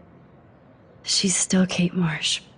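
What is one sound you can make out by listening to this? A young woman answers quietly.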